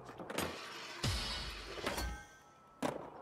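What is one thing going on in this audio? A skateboard grinds along a ledge.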